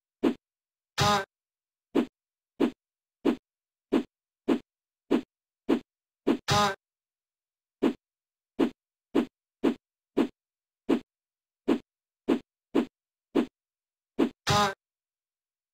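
A video game plays a brief crash sound.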